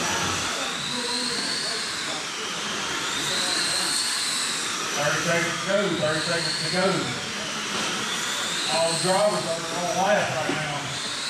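Small electric motors whine high, rising and falling as remote-control cars race around.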